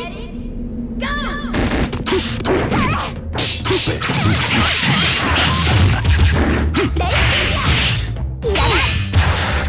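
Punches and kicks land with sharp hits.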